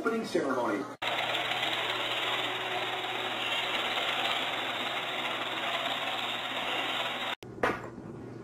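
A robot vacuum cleaner hums steadily as it moves across the floor.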